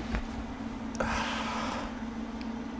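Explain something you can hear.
A young man laughs nearby.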